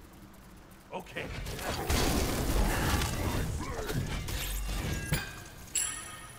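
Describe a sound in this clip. Game spells crackle and burst with magical whooshes and impacts.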